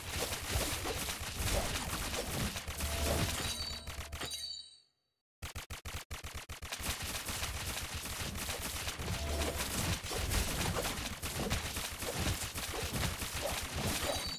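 Magic blasts crackle and boom in a fast fight.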